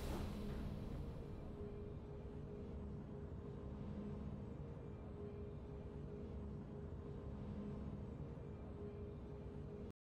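Soft, steady game music plays with a low hum.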